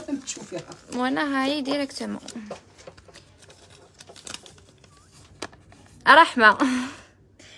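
Paper crinkles and rustles in hands.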